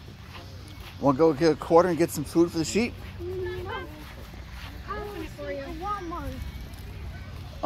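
A young boy talks excitedly close by.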